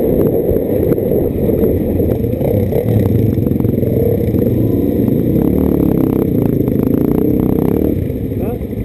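A motorcycle engine rumbles up close.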